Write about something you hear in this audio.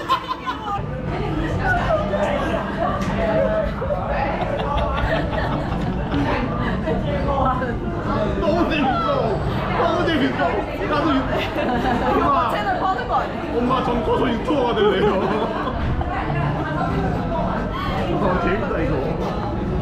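A room full of people chatters in the background.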